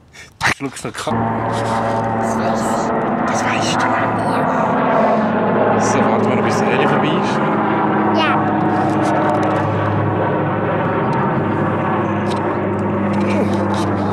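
A man talks cheerfully close by.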